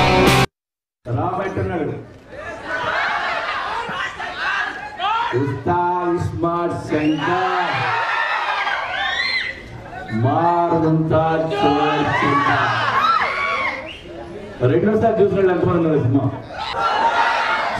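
A man speaks with animation into a microphone over loudspeakers in a large echoing hall.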